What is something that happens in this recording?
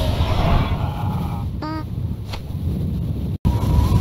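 A loud magical blast bursts and roars.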